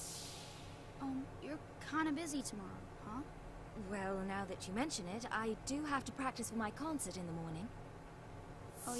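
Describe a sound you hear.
A young woman speaks calmly, in a high voice.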